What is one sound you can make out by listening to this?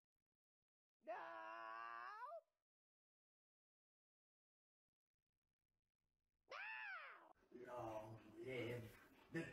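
A cat meows loudly several times.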